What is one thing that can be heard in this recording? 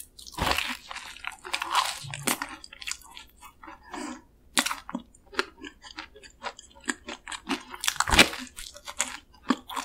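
A young woman chews noisily and wetly, close to the microphone.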